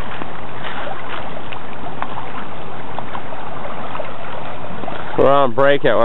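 Water splashes and laps as a dog swims.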